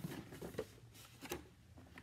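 Cardboard rustles as a box is opened.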